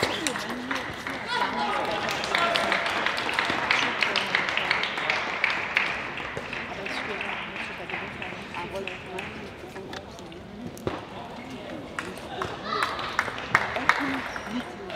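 Table tennis balls click on tables in a large echoing hall.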